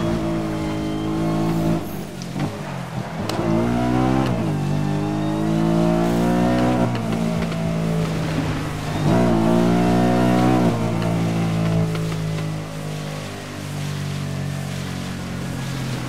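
A car engine roars and revs up and down at high speed.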